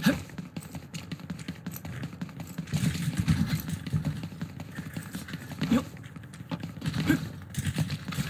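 Footsteps run quickly over hard pavement.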